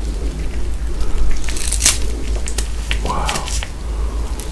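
A man bites into a crunchy chocolate-coated ice cream bar up close.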